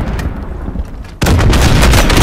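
A rocket launcher fires with a loud blast.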